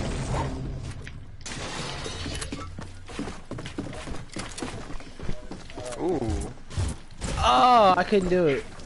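Wooden panels clack into place in quick bursts.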